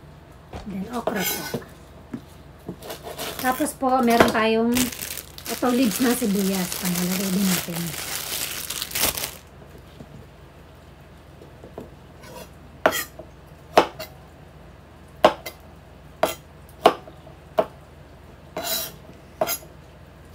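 A knife chops sharply against a wooden cutting board.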